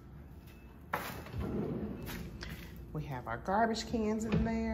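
A drawer slides open with a rumble.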